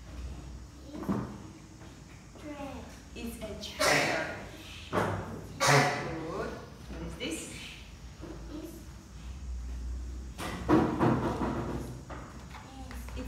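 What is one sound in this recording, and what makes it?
A young woman speaks calmly and clearly nearby.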